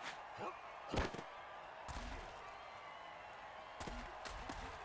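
Armoured players crash together with heavy thuds.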